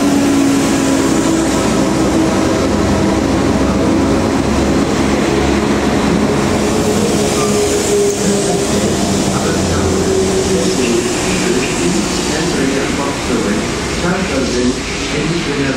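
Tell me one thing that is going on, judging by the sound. Train wheels rumble and squeal on the rails as a train pulls out.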